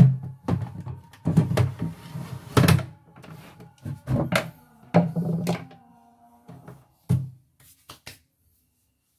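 Plastic parts click and knock as an attachment is slid onto a sewing machine.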